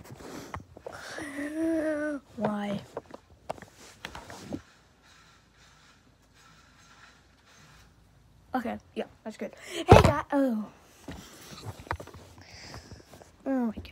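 A young boy speaks excitedly close to the microphone.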